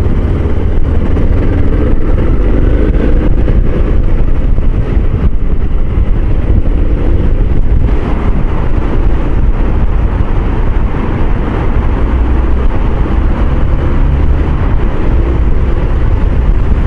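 A motorcycle engine rumbles steadily at close range.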